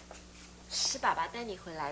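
A woman speaks gently and warmly, close by.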